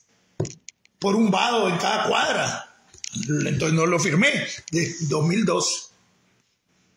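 An older man speaks with animation close to a microphone.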